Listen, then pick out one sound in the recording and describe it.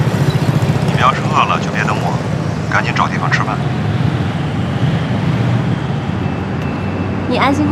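A young woman talks calmly on a phone.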